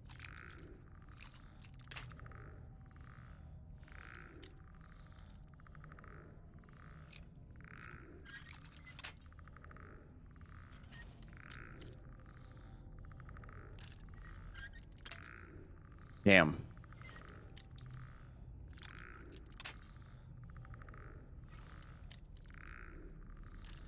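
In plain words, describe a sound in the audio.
A metal lockpick scrapes and clicks in a lock over and over.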